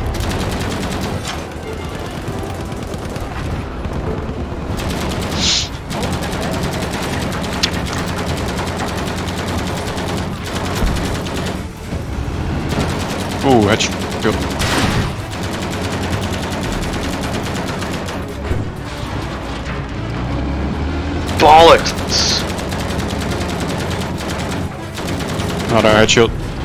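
Explosions rumble and boom in the distance.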